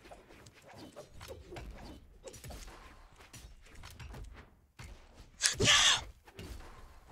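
Quick punches and whooshes of a fighting game clatter rapidly.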